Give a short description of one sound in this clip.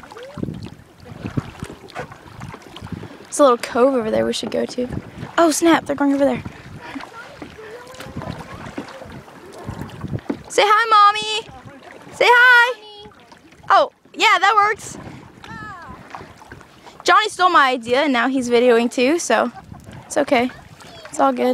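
A paddle dips and splashes in the water.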